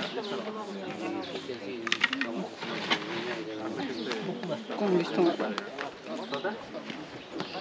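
Knocks and scrapes sound as men shift a heavy box.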